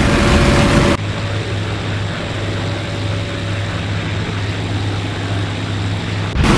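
A propeller plane drones overhead from a distance.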